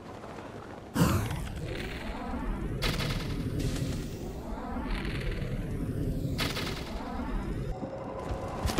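Wind rushes loudly past during a fall and glide.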